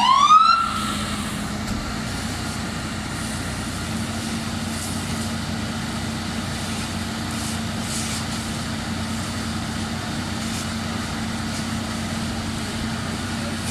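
A burning car crackles and pops.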